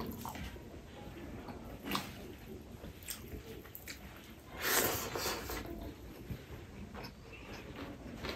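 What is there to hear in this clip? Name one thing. Fingers pick through crunchy fried food with crackling rustles.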